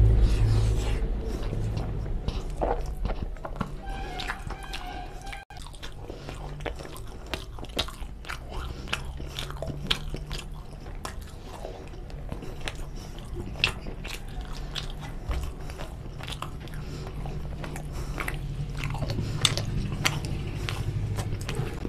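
Fingers squish and mix soft rice on a metal plate.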